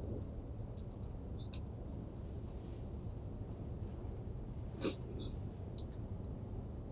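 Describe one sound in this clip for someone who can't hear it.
A man types on a laptop keyboard with soft clicks.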